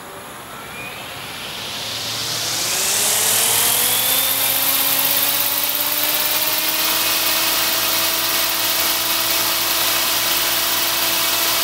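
A model helicopter's engine spins up, whining higher and louder, then holds a steady high whine.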